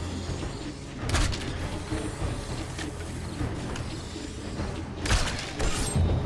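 A crossbow fires with a sharp twang.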